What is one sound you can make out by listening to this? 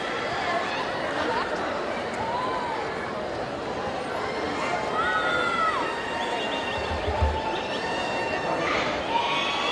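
A large crowd of young people chatters and cheers in a large echoing hall.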